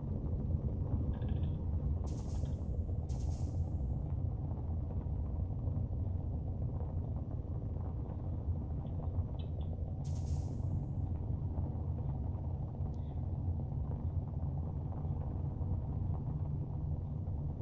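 Tyres rumble over a bumpy dirt road.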